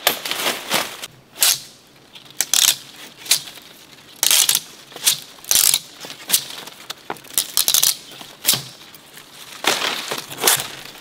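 Palm fronds rustle and swish as they are handled and shaken.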